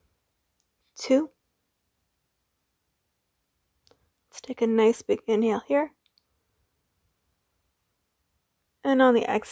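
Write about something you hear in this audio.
A young woman speaks calmly and close by, in short phrases.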